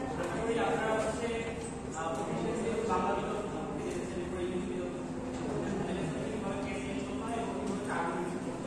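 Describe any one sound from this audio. A man speaks with animation to an audience in a room with a slight echo.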